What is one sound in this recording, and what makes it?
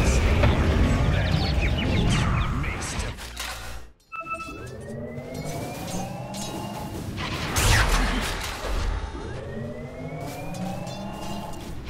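Game battle effects clash and burst with spell sounds.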